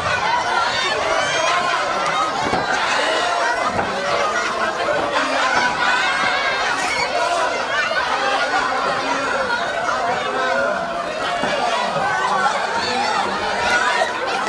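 Children shout and chatter excitedly in a lively crowd.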